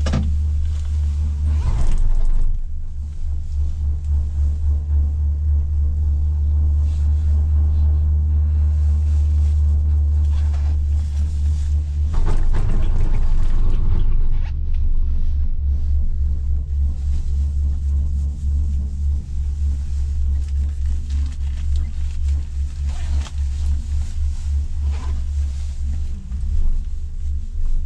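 A cable car cabin hums and rumbles steadily as it moves.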